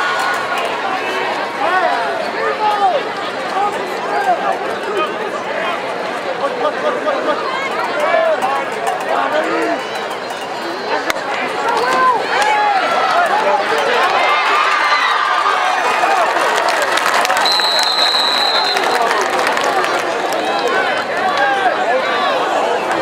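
A large crowd cheers and shouts in an open stadium.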